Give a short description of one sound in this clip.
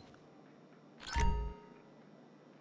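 A heavy metal safe door swings and thuds.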